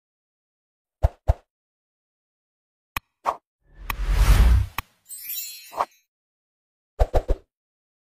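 A mouse button clicks several times.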